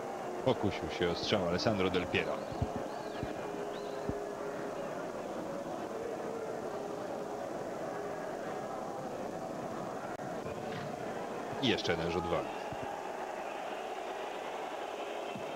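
A large stadium crowd murmurs and roars steadily outdoors.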